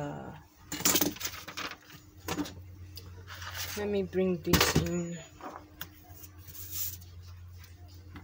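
Paper rustles and crinkles as it is moved.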